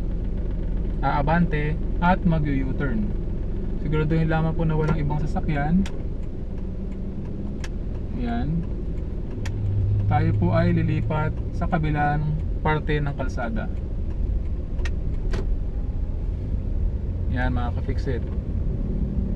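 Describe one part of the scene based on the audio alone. A young man speaks calmly, close by.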